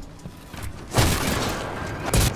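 A heavy gun fires a loud burst.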